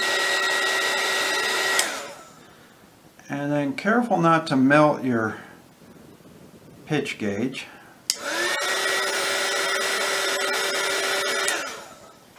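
A heat gun blows with a steady high whir, switching off and on.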